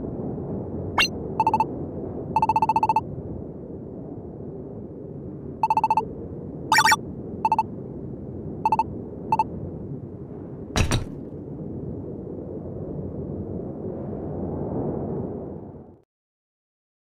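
Soft background music plays steadily, then cuts off.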